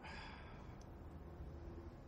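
A newspaper rustles softly.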